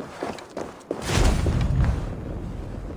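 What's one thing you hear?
A burning torch roars and crackles.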